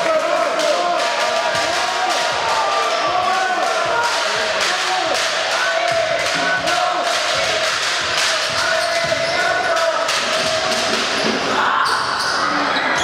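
Basketball shoes squeak on a wooden court.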